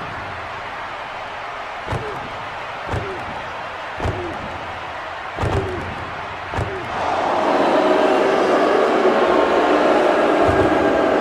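A large crowd murmurs in an echoing arena, swelling to a loud roar.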